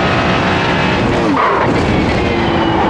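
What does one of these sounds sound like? A racing car engine drops sharply in pitch as it shifts down, then climbs again.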